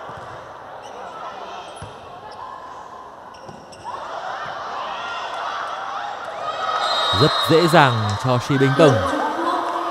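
A volleyball is struck during a rally.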